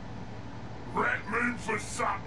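A man speaks briefly and close to a microphone.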